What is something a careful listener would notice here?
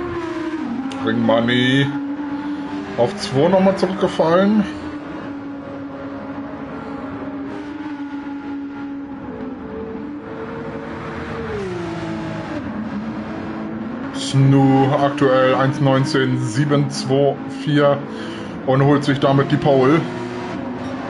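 A racing car engine crackles and pops loudly when slowing for corners.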